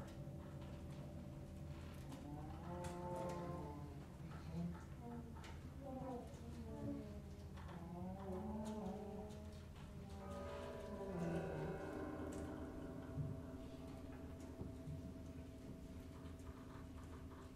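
A group of musicians plays folk instruments in an echoing hall.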